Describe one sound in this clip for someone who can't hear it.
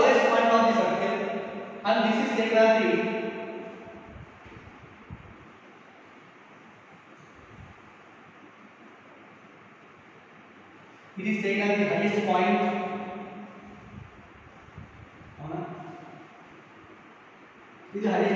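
A man speaks clearly and calmly nearby.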